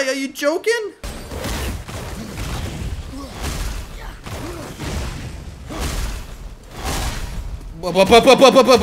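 Game combat sounds of heavy blows and rushing whooshes play.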